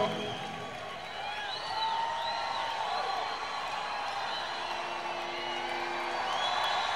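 Electric guitars play loudly through amplifiers, with bending, wailing notes.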